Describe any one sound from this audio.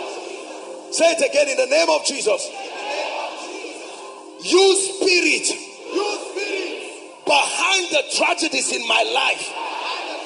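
A man preaches forcefully into a microphone, heard through loudspeakers.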